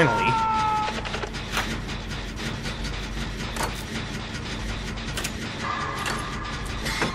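Metal parts click and clank at irregular moments.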